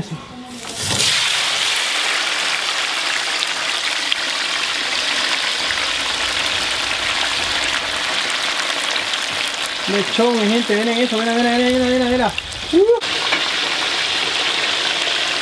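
A wood fire crackles and roars steadily.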